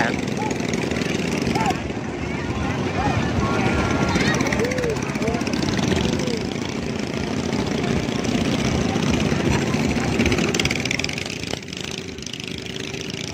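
Boat engines rumble and putter on the water.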